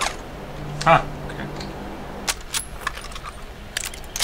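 A rifle's metal parts click and clatter as it is handled.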